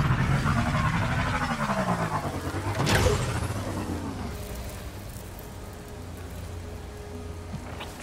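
A motorbike engine hums and whines as the bike rides along.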